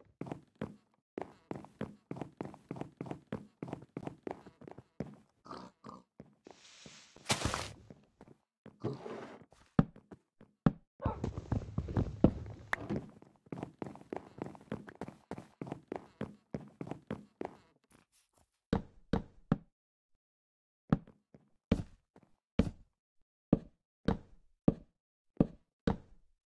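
Footsteps thud steadily across wooden boards.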